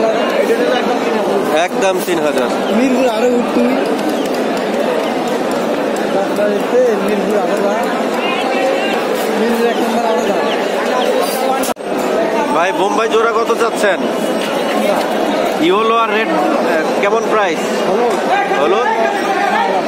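A crowd of people chatters busily nearby.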